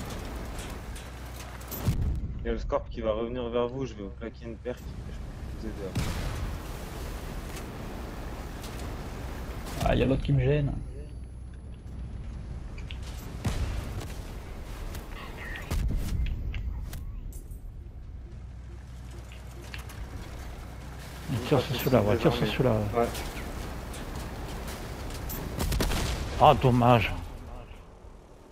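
Heavy guns fire in bursts.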